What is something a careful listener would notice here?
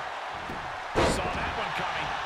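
A body slams onto a wrestling ring mat with a heavy thud.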